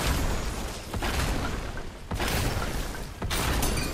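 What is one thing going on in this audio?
Energy beams crackle and zap.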